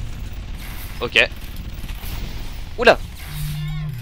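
A gun fires loudly.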